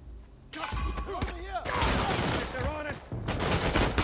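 A man shouts in alarm.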